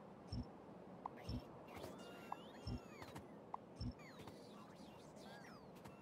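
Swarming creatures screech and chitter.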